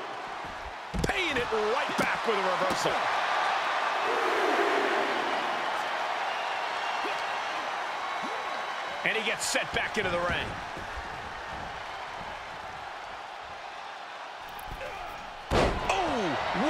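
Heavy bodies slam onto a wrestling mat with loud thuds.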